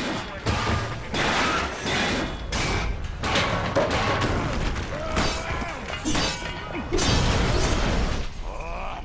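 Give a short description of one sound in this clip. Loud explosions boom and roar in quick succession.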